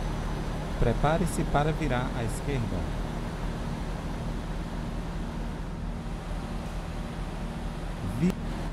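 A diesel truck engine hums while cruising slowly.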